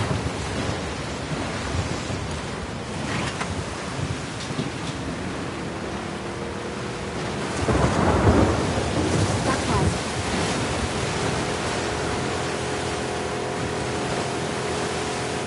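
Rushing water roars loudly.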